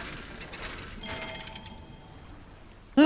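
A short bright chime rings out.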